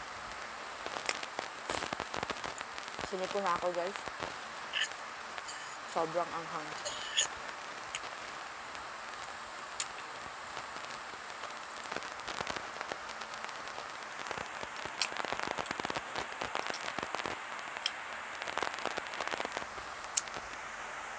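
A woman chews and slurps noodles close to a microphone.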